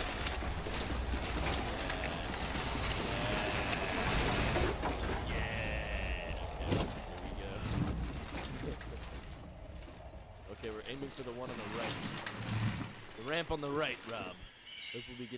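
A shopping cart rattles as it rolls over wooden planks.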